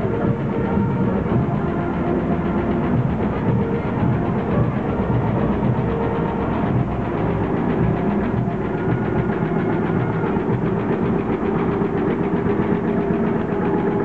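A tractor engine chugs slowly past, close by.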